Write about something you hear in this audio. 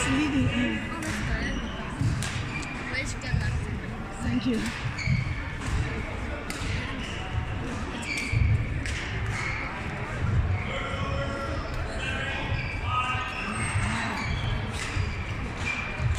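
Shoes squeak on a hard court floor.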